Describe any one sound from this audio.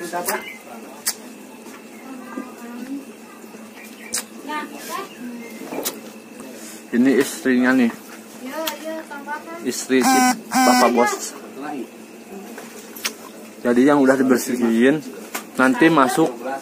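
Several women and men chat nearby.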